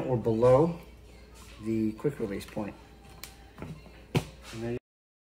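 A metal clamp lever clicks shut.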